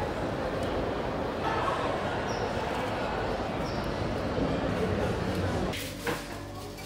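Indoor crowd chatter murmurs in a large hall.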